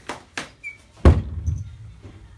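A door bangs shut.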